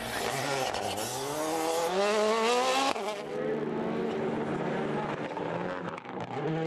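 A rally car engine revs hard, rising in pitch, then drops and roars on.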